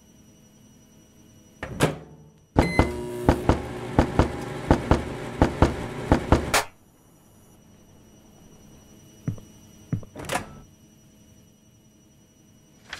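A microwave oven hums steadily.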